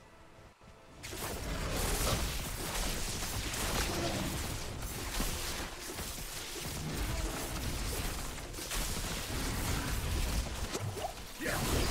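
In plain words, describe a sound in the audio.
Bears growl and roar in combat.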